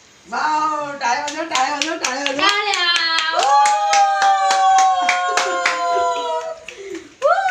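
People clap their hands in rhythm.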